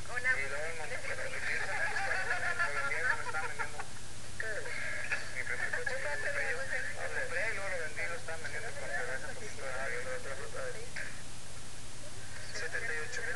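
Young women talk and laugh with animation, close by.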